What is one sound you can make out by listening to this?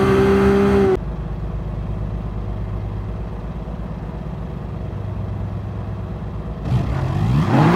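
A racing car engine idles with a low, steady rumble.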